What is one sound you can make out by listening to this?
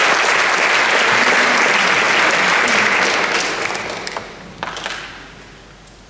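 An audience applauds in a large echoing hall, then the applause fades.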